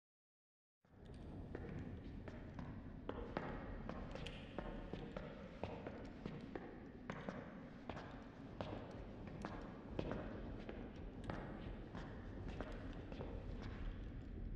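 Footsteps tread slowly on a hard floor, echoing in a large hall.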